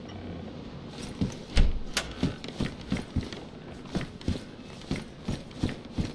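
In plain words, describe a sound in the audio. Footsteps thud steadily across a wooden floor.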